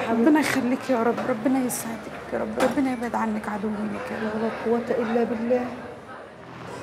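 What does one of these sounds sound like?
A middle-aged woman talks with animation, close by.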